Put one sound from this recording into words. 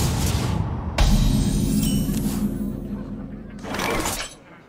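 A game sounds a bright chime announcing a new turn.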